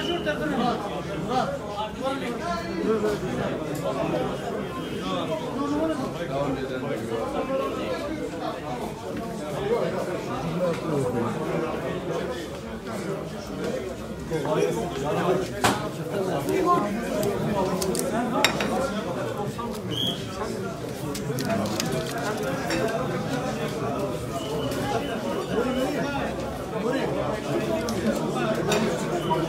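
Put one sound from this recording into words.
A crowd of men chatter loudly all around, close by.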